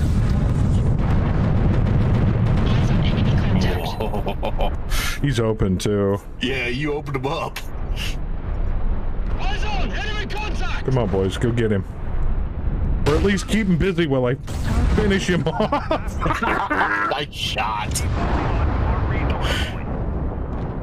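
Weapons fire and explosions boom.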